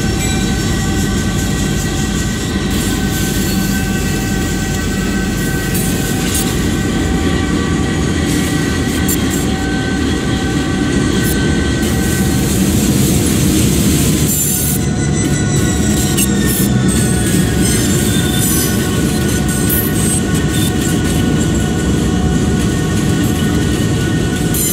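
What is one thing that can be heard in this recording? Steel wheels roll and clack over rail joints.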